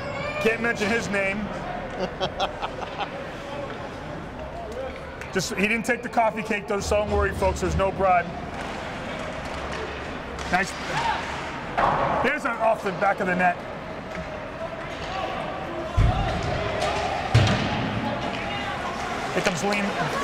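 A crowd of spectators cheers and shouts in a large echoing rink.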